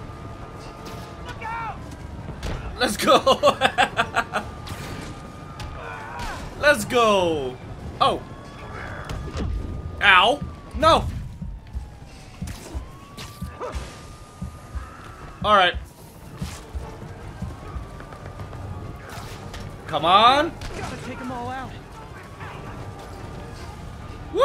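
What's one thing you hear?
Blows land with heavy thuds and smacks.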